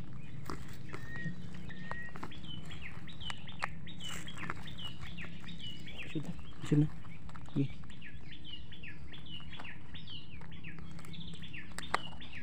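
A plastic cup scrapes and knocks softly against dry soil.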